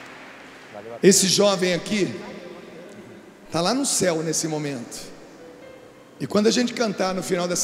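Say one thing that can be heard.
A man speaks with animation through a microphone on a loudspeaker system.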